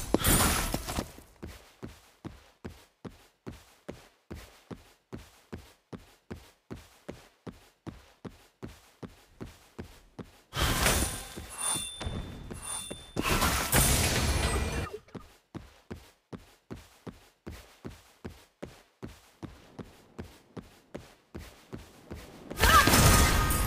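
Quick footsteps patter steadily.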